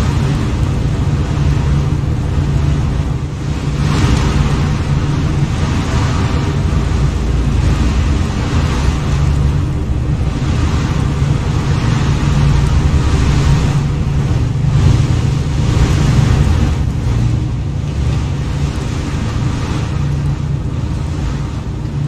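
A spacecraft's engines hum and rumble steadily as it hovers.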